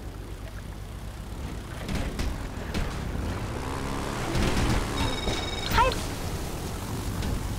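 A speedboat engine roars over the water.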